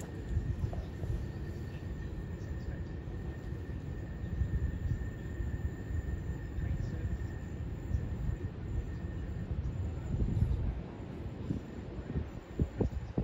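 Wind blusters against the microphone outdoors.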